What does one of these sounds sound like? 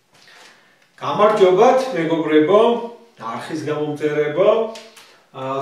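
A middle-aged man speaks clearly and calmly up close.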